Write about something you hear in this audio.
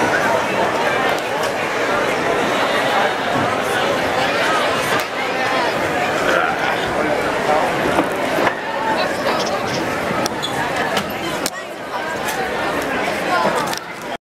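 A crowd of young men and women chatter and cheer loudly close by, in a large echoing hall.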